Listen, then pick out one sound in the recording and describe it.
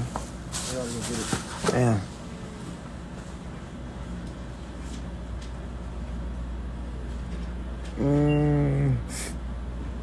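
A young man talks close to a phone microphone in short bursts.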